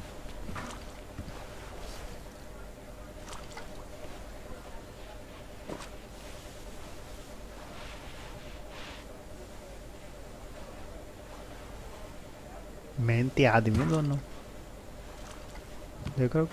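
A brush scrubs a carpet.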